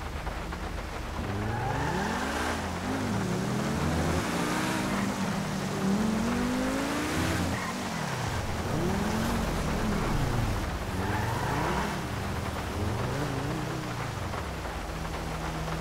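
A sports car engine revs up and down repeatedly.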